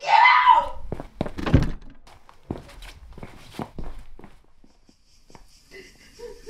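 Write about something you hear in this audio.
Quick footsteps thud across a wooden floor.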